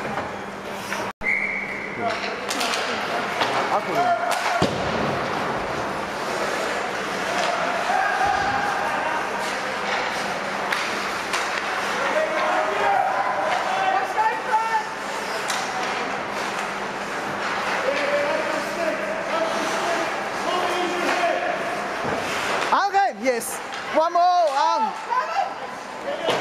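Players and spectators shout and call out in a large echoing rink.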